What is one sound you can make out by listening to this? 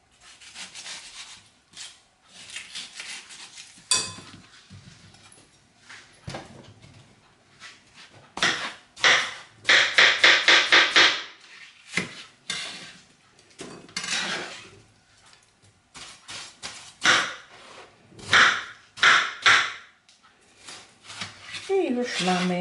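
A knife slices through crisp, juicy watermelon on a cutting board.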